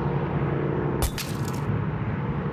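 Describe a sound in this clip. Glass cracks sharply with a single snap.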